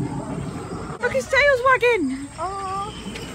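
A young child squeals excitedly close by.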